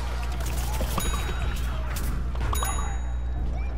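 Rapid shots fire from a cartoon blaster.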